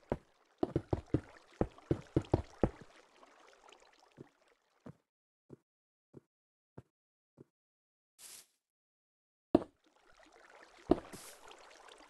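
Stone blocks are placed one after another with dull knocks in a video game.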